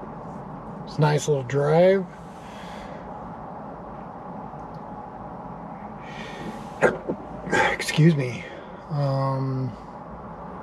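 A middle-aged man speaks calmly and close by, with pauses.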